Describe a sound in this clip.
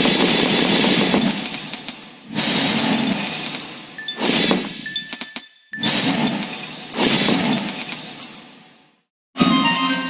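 Cartoon game tiles pop and chime in quick bursts.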